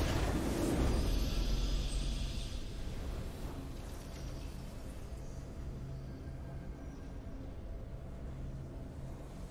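A triumphant game fanfare plays and slowly fades.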